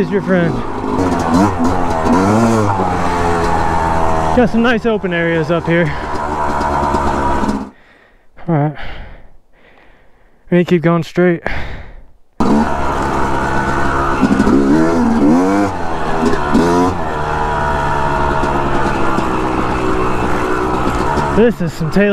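A dirt bike engine revs up and down as the bike rides along a trail.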